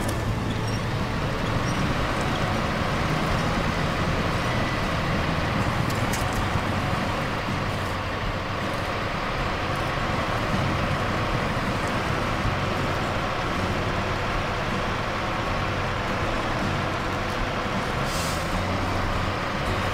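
A truck engine rumbles steadily as it drives slowly.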